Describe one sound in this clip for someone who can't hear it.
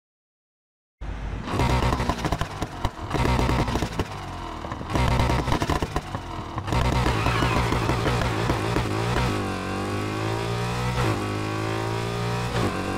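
A car engine revs hard and roars as it speeds up through the gears.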